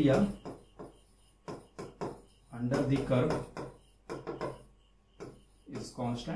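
A marker taps and scratches on a board.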